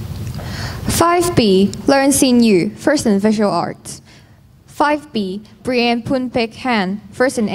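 A woman speaks into a microphone, her voice carried over loudspeakers in an echoing hall.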